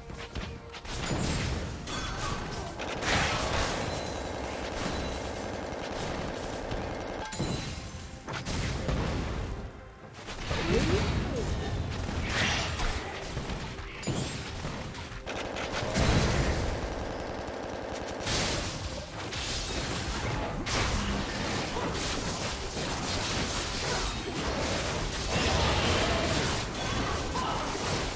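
Spell blasts and hits crackle and boom in a fast video game battle.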